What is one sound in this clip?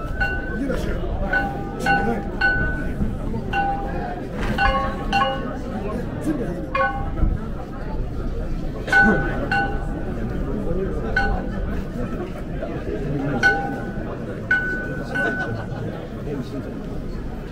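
A crowd of men chatters outdoors nearby.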